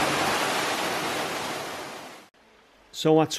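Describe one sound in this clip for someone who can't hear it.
Water pours and splashes loudly from a large pipe.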